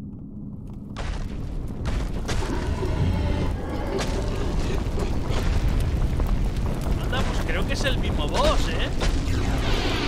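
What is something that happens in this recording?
A fire roars loudly.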